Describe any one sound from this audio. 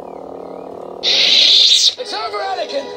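A toy lightsaber switches off with a loud crackling whoosh.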